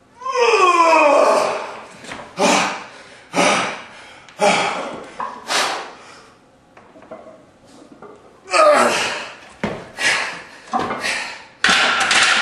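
Metal weight plates clank on a barbell.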